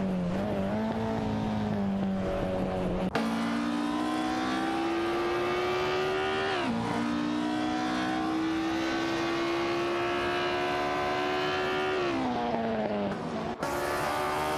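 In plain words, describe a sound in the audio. A racing car engine roars, rising in pitch and dropping sharply at each gear change.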